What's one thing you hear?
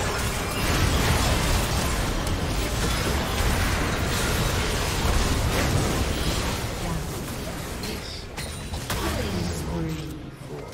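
Spell effects crackle and blast in a game battle.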